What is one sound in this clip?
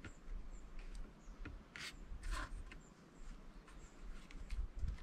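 Wooden logs knock and creak as a man handles them.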